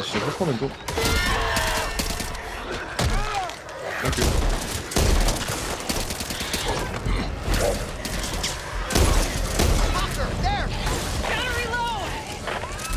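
A shotgun fires loud, booming blasts again and again.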